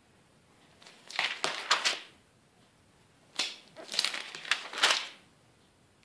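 Magazine pages rustle as they are turned.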